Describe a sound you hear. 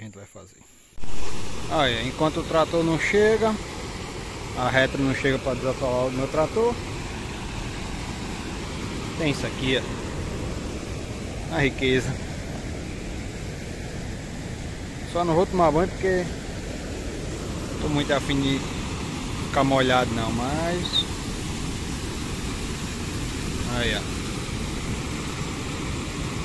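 Water rushes steadily over a weir.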